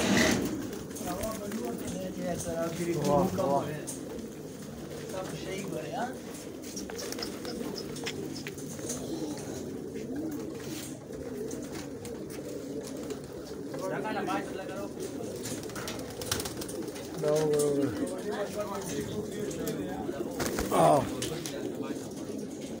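Pigeons peck rapidly at grain on hard ground.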